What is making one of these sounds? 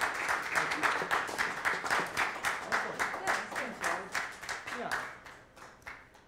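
A woman claps her hands in quick, steady applause that fades.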